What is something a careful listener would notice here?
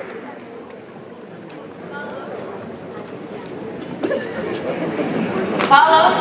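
A woman speaks calmly into a microphone, amplified through loudspeakers in a large echoing hall.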